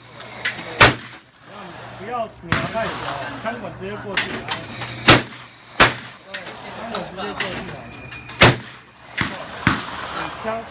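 Shotguns fire loud sharp blasts outdoors, echoing off nearby hills.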